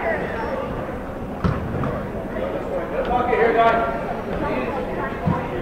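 Spectators chatter and call out from the stands.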